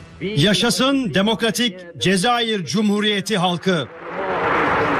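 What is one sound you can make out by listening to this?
A man speaks loudly and emphatically into a microphone.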